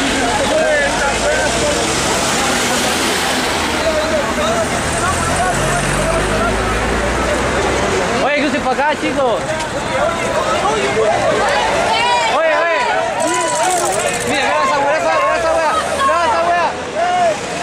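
A crowd shouts and chants loudly outdoors.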